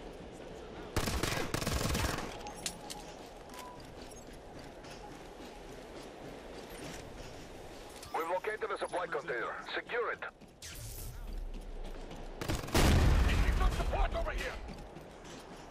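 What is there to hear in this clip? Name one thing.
A rifle fires in loud bursts.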